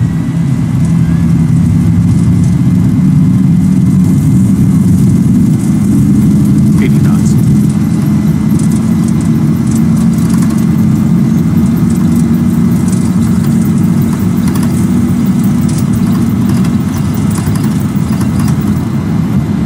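Tyres rumble along a runway.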